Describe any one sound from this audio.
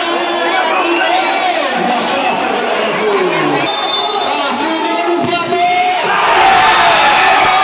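A large crowd cheers and shouts loudly, growing louder near the end.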